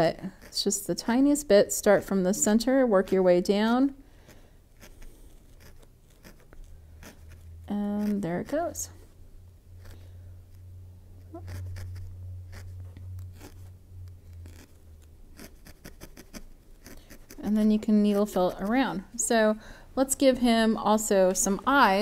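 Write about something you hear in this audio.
A woman talks calmly and close to a microphone.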